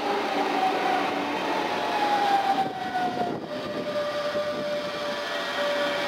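An electric train rushes past with a high whine that falls in pitch.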